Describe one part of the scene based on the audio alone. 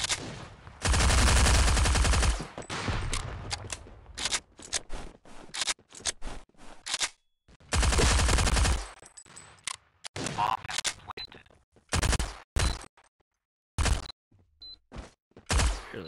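Rapid bursts of gunfire ring out.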